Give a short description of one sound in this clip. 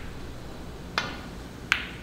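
A cue strikes a snooker ball with a sharp tap.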